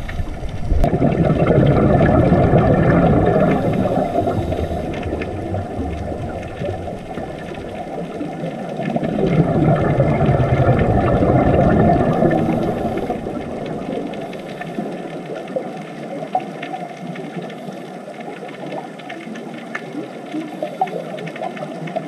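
Scuba divers' breathing bubbles gurgle and rush upward in loud bursts underwater.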